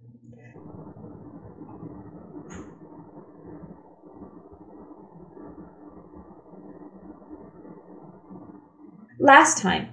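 Liquid pours from a bottle into a glass.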